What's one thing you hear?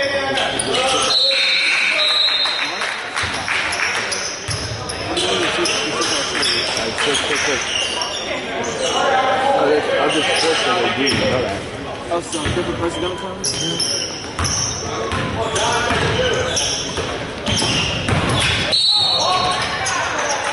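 A referee's whistle blows shrilly.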